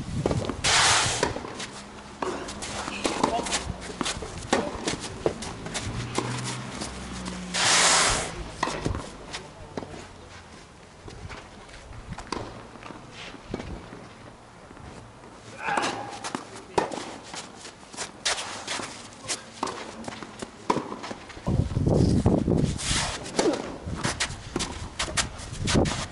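Tennis balls are struck with rackets in sharp pops.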